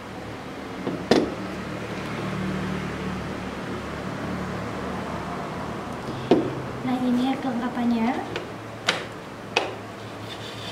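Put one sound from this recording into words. Metal parts clink and knock against a wooden table.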